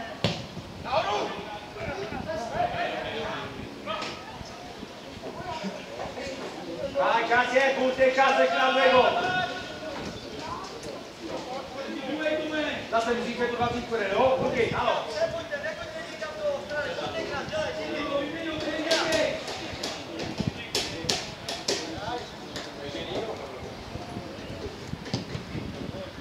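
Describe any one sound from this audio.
A man shouts instructions loudly from close by, outdoors.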